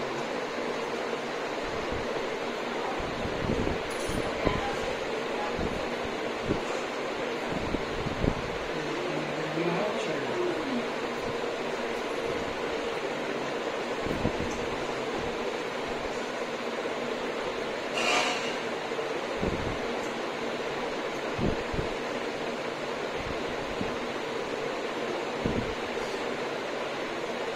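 A tattoo machine buzzes steadily close by.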